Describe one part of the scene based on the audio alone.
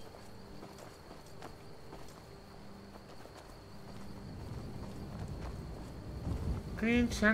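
Armoured footsteps thud and crunch on a dirt path.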